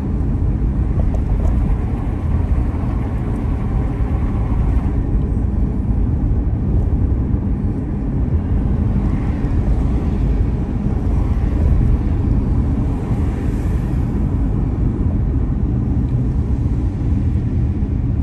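Wind buffets loudly in a steady low roar.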